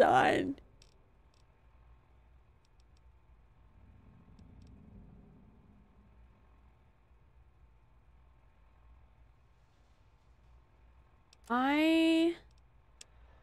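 A young woman's voice sounds briefly and closely through a microphone, rising in pitch.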